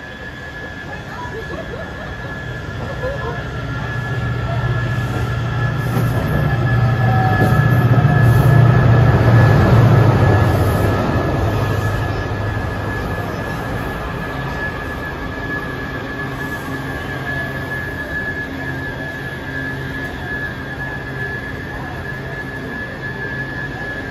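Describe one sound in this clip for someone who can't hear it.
A steady high whine from a subway train's motors rings through the station.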